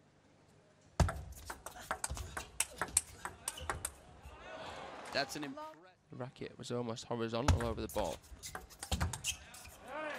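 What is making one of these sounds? A table tennis ball clicks back and forth off paddles and the table in a large hall.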